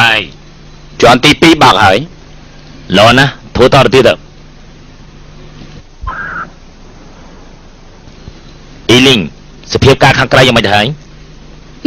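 A young man speaks into a handheld radio.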